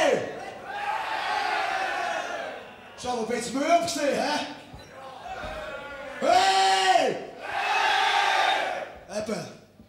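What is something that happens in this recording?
A large crowd cheers and roars in a big hall.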